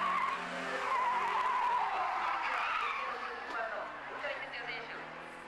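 Tyres squeal loudly on the track.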